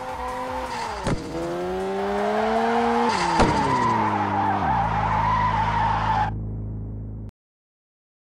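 A car engine roars and shifts up and down in pitch.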